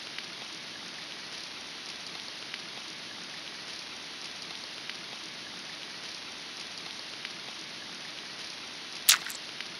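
Steady rain falls and patters.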